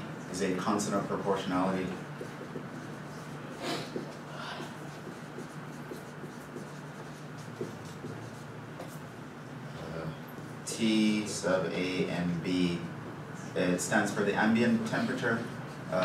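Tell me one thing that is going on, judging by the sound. A man speaks calmly, as if lecturing, in a slightly echoing room.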